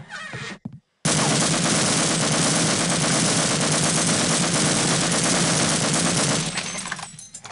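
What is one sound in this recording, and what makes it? An automatic gun fires a long burst.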